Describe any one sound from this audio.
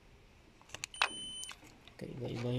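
A multimeter gives a short, high beep.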